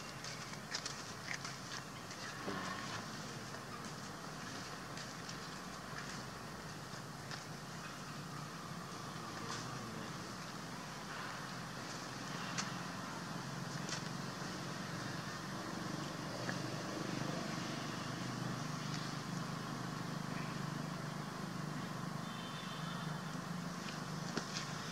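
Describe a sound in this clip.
Leaves rustle softly in a light breeze outdoors.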